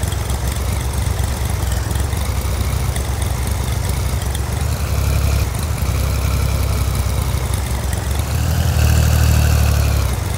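A tractor engine rumbles steadily and grows louder toward the end.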